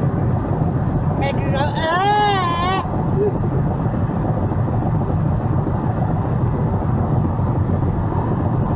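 Tyres and engine rumble steadily from inside a car driving on a highway.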